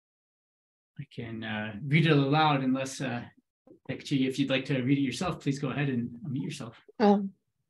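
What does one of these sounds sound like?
Another young man speaks with animation over an online call.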